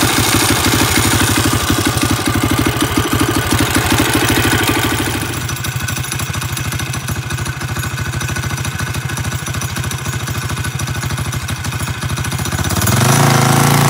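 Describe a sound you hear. A small engine idles close by with a steady rattling chug.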